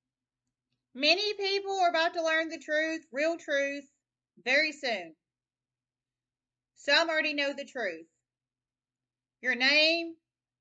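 A woman speaks calmly and close up, in short phrases with pauses.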